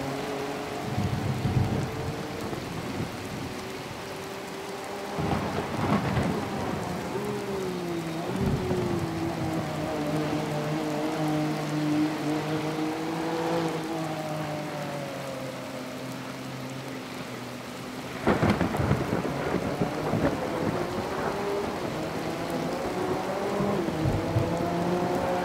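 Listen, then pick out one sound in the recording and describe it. A racing car engine roars, its pitch rising and falling through the gears.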